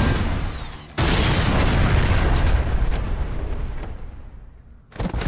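A loud explosion roars and slowly dies away.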